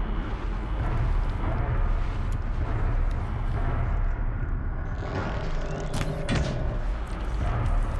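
A bowstring creaks as it is drawn.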